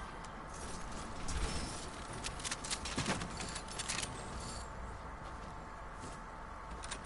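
Footsteps run over grass.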